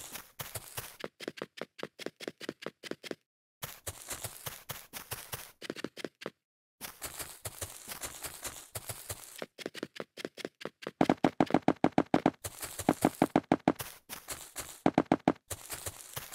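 Rapid footsteps patter on a hard surface.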